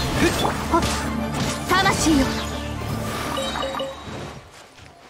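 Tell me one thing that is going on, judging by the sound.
Fiery blasts and magic effects burst loudly in a game battle.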